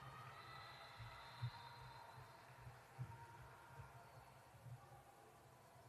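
A basketball bounces with dull thumps on a wooden floor in a large echoing hall.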